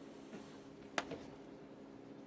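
A snooker ball is set down on the table with a soft click.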